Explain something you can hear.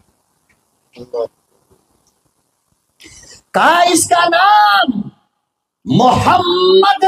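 An elderly man preaches loudly and with fervour into a microphone, heard through a loudspeaker.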